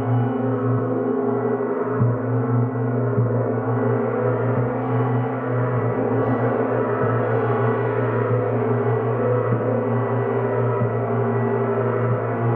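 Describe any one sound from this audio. Soft mallet strikes on gongs sound now and then.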